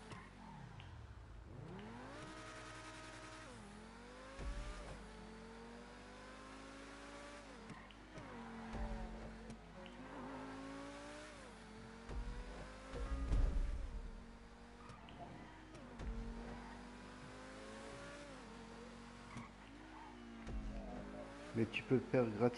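A car engine revs up and down as a sports car races.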